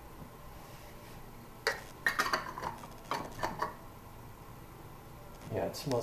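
A lid clicks on a glass jar.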